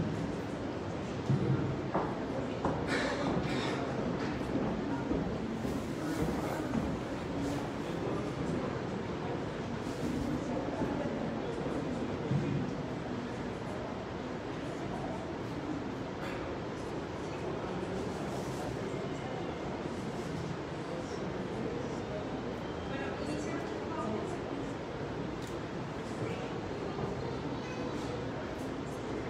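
Several young adults talk at a distance in a large echoing room.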